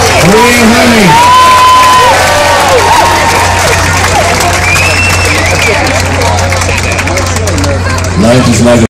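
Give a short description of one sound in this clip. A crowd cheers and screams close by.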